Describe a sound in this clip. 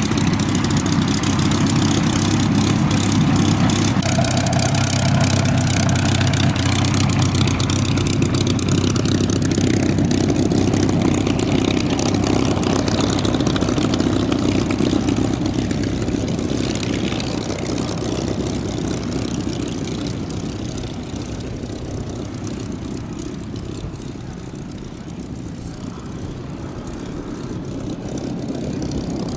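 A propeller plane's piston engine roars steadily close by, then grows quieter as the plane taxis away.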